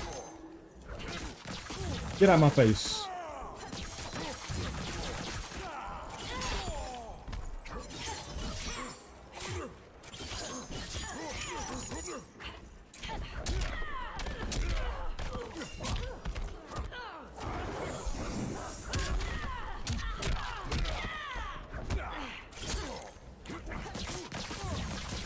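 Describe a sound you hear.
Punches and kicks land with heavy, rapid thuds.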